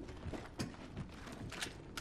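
Footsteps clatter on metal stairs.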